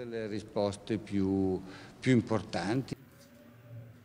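A man speaks calmly into microphones.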